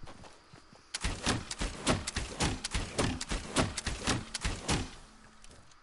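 Guns fire in rapid bursts at close range.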